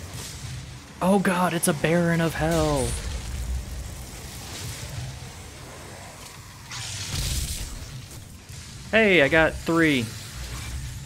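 A monster roars with a deep, bending growl.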